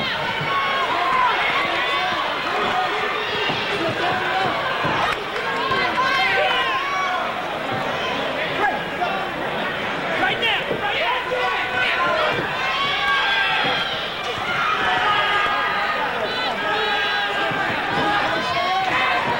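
Boxing gloves thud against a body in quick punches.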